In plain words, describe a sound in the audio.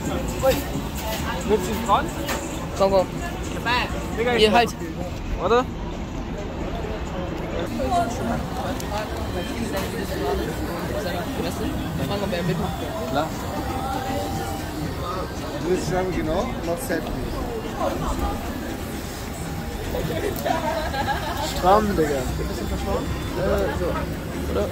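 A busy street murmurs with passing people and traffic outdoors.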